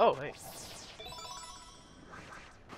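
A bright chime rings out briefly.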